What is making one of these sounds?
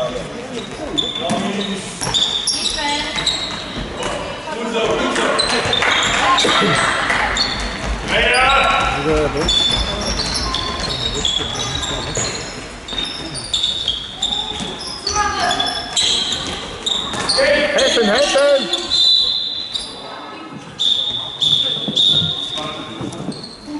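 A ball bounces on the floor with hollow thuds.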